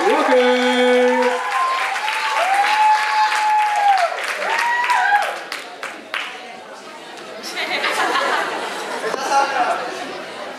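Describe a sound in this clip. An audience cheers and whoops loudly in a large hall.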